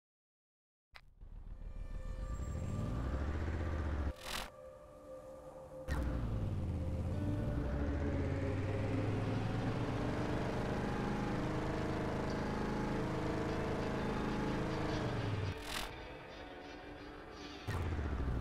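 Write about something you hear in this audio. A vehicle engine roars and revs up and down.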